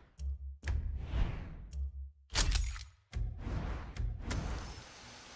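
Menu clicks tick sharply.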